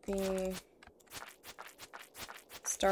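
Quick swishing and hitting sounds come in a fast series.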